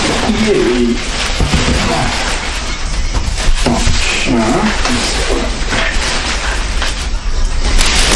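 Cardboard flaps scrape and rustle as a box is handled.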